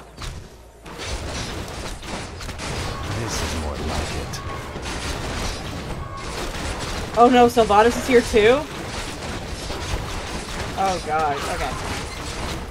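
Game battle sounds clash and rumble.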